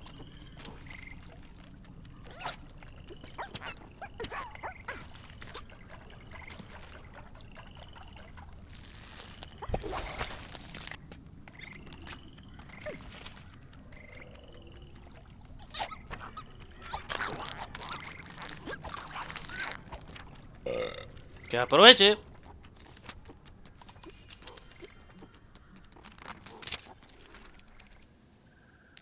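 Short, chirping electronic sound effects play over and over.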